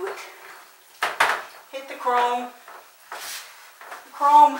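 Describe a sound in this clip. A brush scrubs against a tub in short strokes.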